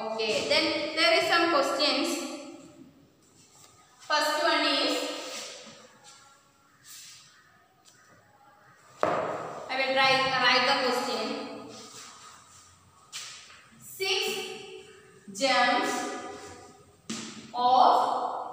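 A young woman speaks calmly, as if teaching, close by.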